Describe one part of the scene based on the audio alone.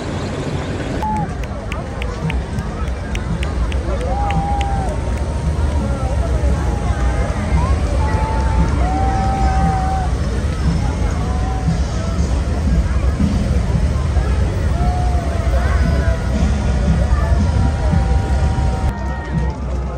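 Motorcycle engines rumble past in a steady procession.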